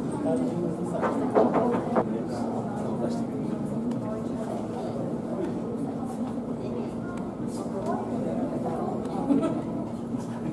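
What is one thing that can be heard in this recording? Water splashes as a sea otter moves at the edge of a pool.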